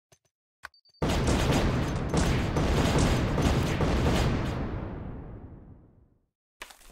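Bombs explode in a rapid burst of booms that slowly fade away.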